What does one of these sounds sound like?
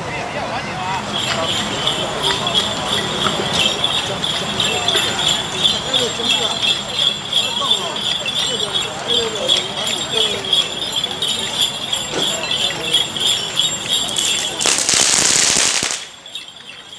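A procession band beats drums and clashes cymbals, growing louder as it approaches.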